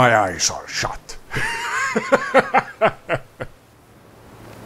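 A man laughs heartily.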